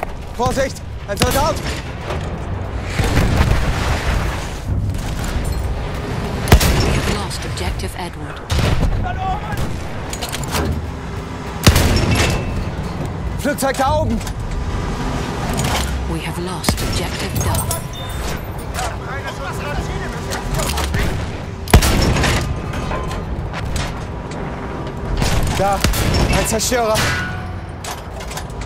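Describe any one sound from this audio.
Heavy guns fire with loud, sudden booms.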